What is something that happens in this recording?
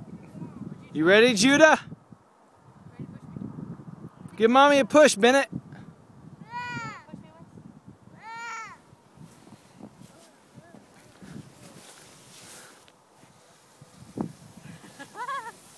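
Children shout and squeal with excitement outdoors.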